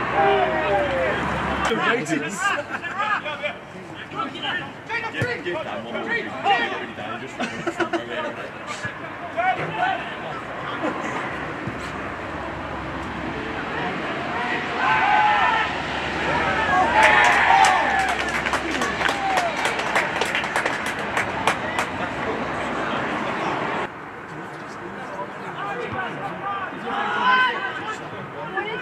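Footballers shout to each other across an open pitch.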